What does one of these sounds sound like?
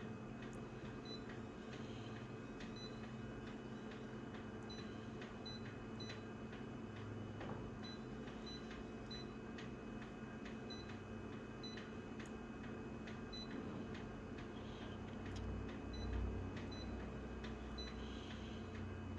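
An office machine hums steadily.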